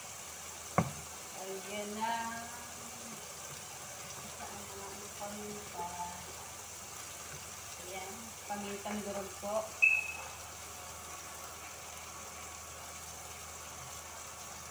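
Greens sizzle softly in a hot pan.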